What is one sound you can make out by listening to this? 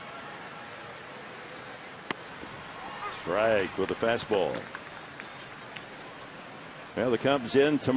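A stadium crowd murmurs in the background.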